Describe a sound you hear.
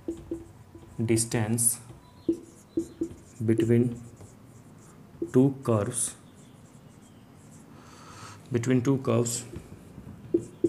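A young man speaks calmly in short phrases, close by.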